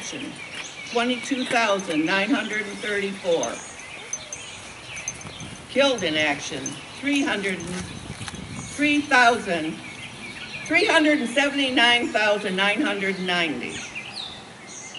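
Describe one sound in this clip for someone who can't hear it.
A man speaks slowly and solemnly through a loudspeaker outdoors.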